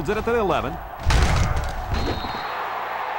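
Football players collide in a heavy tackle.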